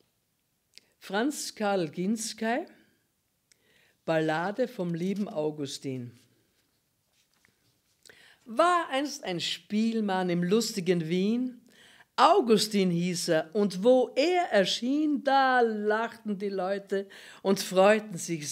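An elderly woman speaks calmly and clearly into a nearby microphone.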